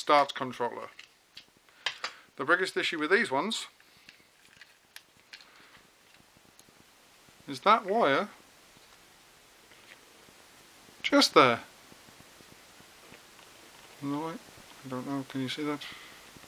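Plastic parts click and rattle.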